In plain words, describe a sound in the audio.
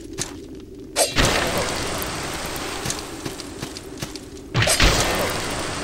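A sword slashes with a heavy whoosh.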